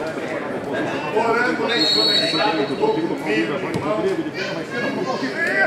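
Men shout across an open sports field.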